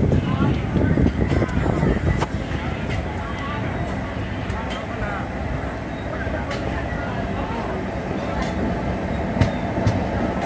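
Wheels click and clack over rail joints.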